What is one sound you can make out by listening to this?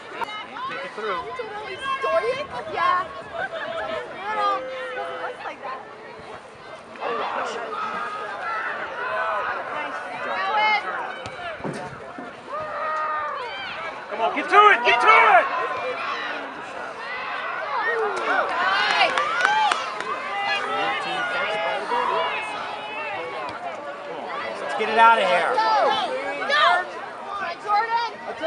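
A crowd of men and women cheers and shouts outdoors.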